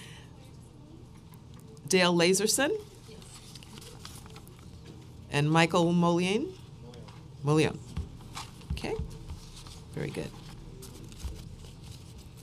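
Papers rustle as pages are turned.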